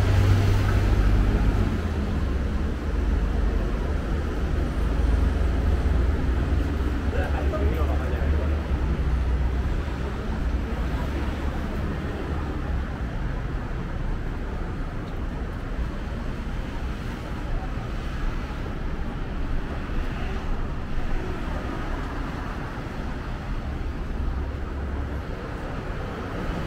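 Traffic rumbles steadily on roads below, outdoors.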